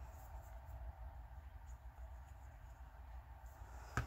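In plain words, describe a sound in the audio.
A cap clicks off a glue stick.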